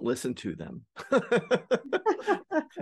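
A middle-aged man laughs over an online call.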